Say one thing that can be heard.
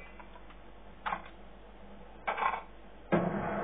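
Gunshots from a video game crack through a television speaker.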